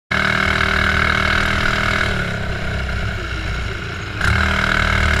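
A small kart engine buzzes loudly up close, easing off and then revving up again.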